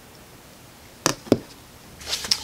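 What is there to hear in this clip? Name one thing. A plastic case clicks and knocks.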